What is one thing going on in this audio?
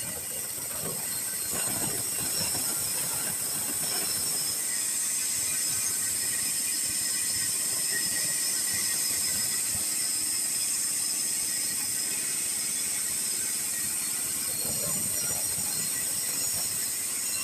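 A band saw whines steadily as it cuts through a long timber plank.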